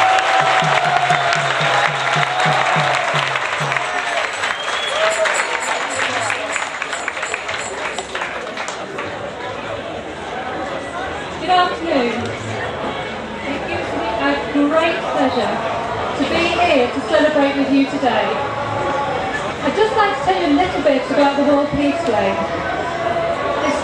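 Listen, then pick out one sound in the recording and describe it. A crowd of people chatters and calls out loudly nearby.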